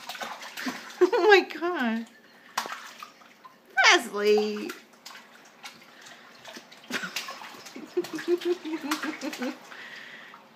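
A baby squeals and babbles close by.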